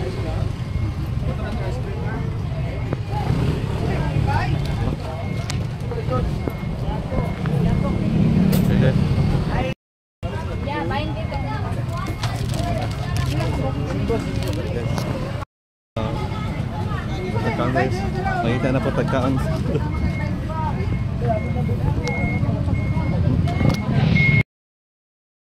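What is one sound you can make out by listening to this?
A busy street crowd murmurs outdoors.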